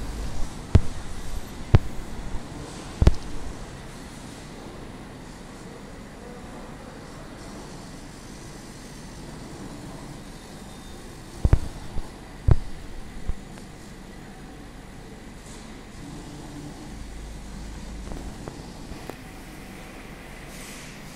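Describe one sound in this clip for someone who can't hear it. A laser cutting machine hums steadily as its head moves.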